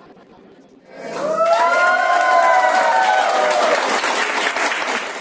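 Men and women cheer and whoop loudly.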